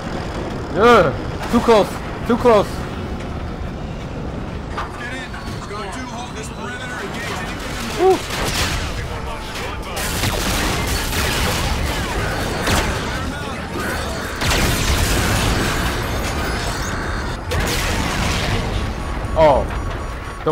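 A spaceship engine roars steadily in a video game.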